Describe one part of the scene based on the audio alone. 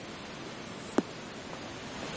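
A golf ball thuds onto turf.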